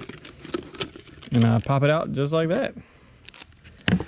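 Liquid pours from one plastic container into another.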